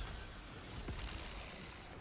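A weapon fires in rapid bursts.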